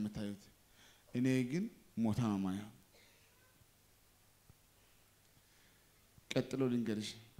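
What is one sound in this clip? A young man speaks into a microphone in short, emphatic bursts, heard through loudspeakers.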